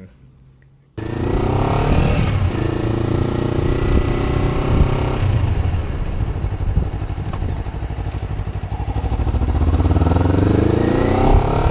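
A motorcycle engine hums and revs as it rides along a street.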